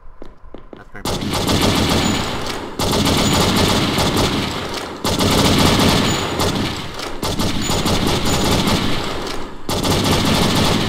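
Pistol shots ring out in rapid succession.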